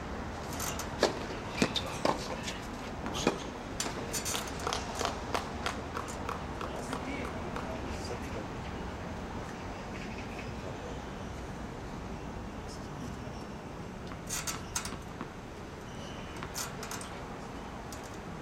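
A tennis ball is struck with a racket, thudding sharply several times.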